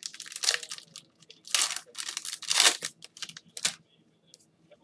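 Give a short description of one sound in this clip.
Plastic wrapping crinkles and tears loudly close by.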